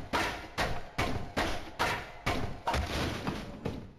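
A wooden crate splinters and breaks apart.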